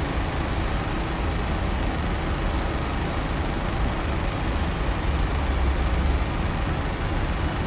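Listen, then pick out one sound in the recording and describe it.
Air rushes loudly past the cockpit.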